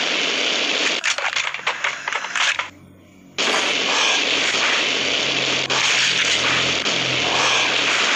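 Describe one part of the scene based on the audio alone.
A machine gun fires in rapid, loud bursts.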